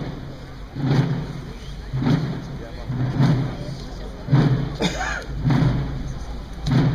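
A drum beats slowly and steadily in a marching rhythm.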